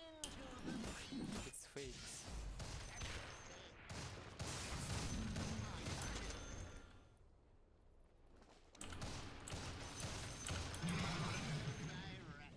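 Game spell effects crackle and whoosh in a fight.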